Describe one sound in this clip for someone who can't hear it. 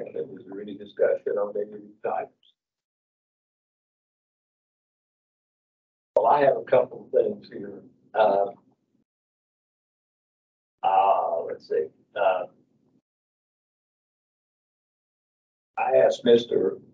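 An older man speaks calmly into a microphone, in short pauses.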